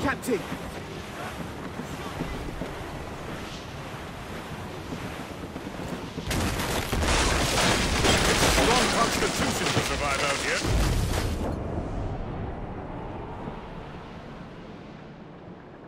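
Waves splash against a sailing ship's hull.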